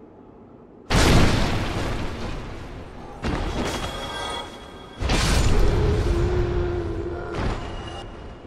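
Magic blasts crash in sudden loud bursts.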